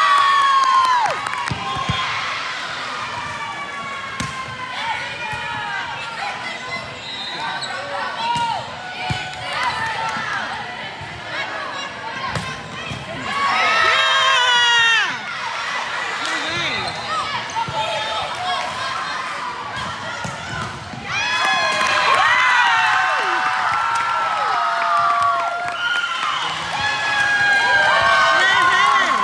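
A crowd of girls and women cheer and shout in a large echoing gym.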